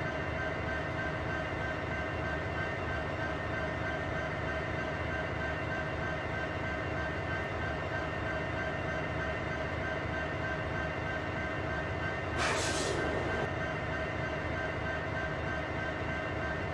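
A freight train rumbles steadily along the rails.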